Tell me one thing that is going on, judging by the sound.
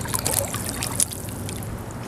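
A boot splashes through shallow water.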